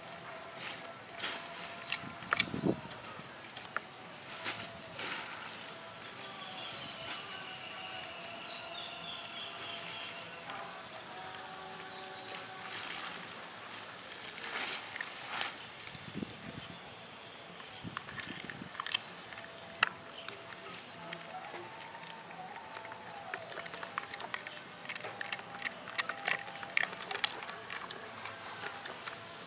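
Dogs chew and gnaw on wooden sticks, with sharp cracks and snaps.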